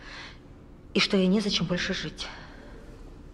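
A man speaks with concern nearby.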